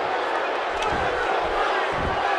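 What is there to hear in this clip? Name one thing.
A body thuds heavily onto a wrestling mat.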